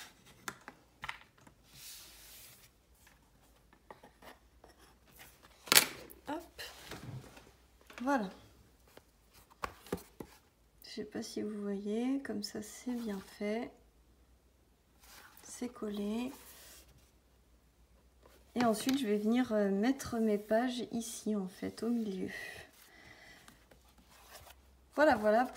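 Stiff card rustles and rubs close by.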